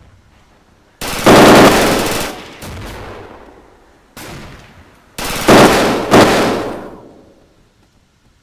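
A rifle fires loud shots that echo across open land.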